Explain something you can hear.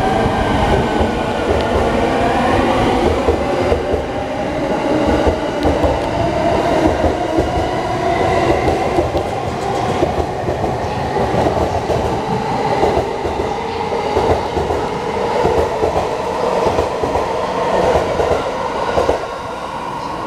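A train rumbles and clatters past close by on the rails.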